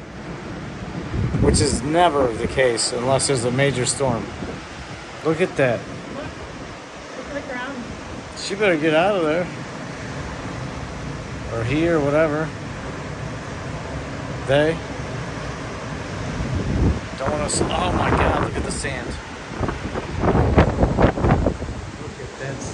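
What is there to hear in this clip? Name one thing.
Wind gusts buffet and rumble against the microphone.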